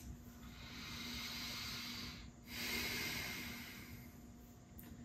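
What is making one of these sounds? A woman breathes in and out slowly and audibly, close by.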